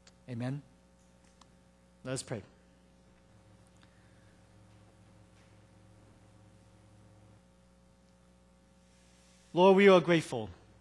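A man speaks slowly through a microphone in an echoing hall, with long pauses.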